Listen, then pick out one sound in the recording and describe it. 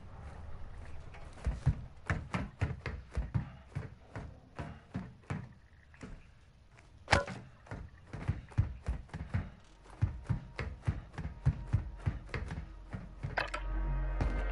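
Footsteps thud quickly on a metal deck.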